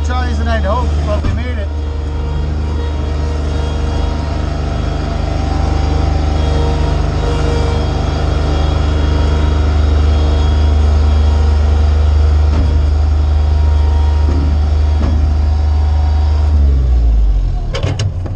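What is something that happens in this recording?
A skid steer loader's diesel engine rumbles loudly and steadily, then shuts down.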